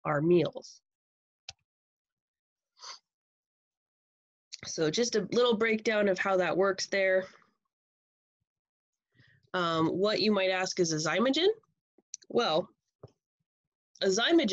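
A woman speaks calmly into a microphone, explaining with pauses.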